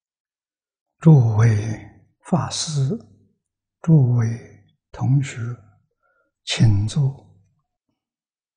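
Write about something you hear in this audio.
An elderly man speaks calmly and slowly into a close microphone.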